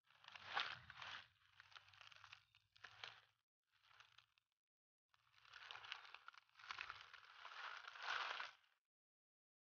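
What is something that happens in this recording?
A snake slithers through dry leaves with a rustle.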